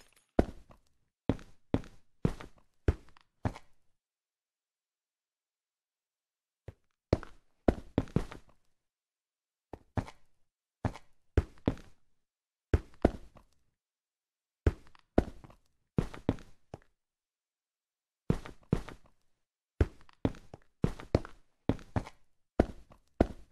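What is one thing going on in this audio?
Blocks are placed with quick, sharp thuds in short bursts.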